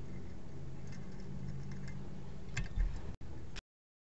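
A metal fitting knocks down onto a soft surface.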